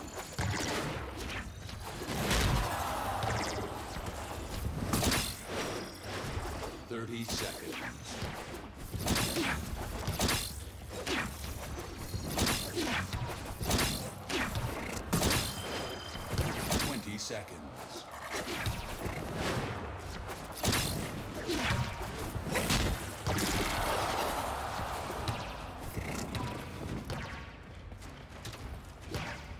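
Metal blades swing and clang in quick strikes.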